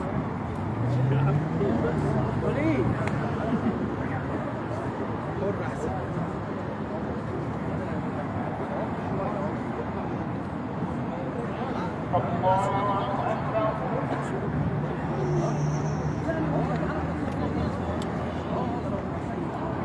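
A crowd of men talk and shout outdoors.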